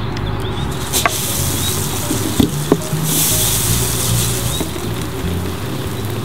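A lawn sprinkler sprays water with a steady hiss.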